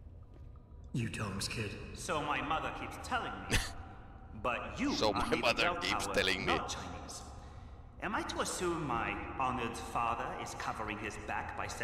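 A young man speaks calmly and clearly, close by.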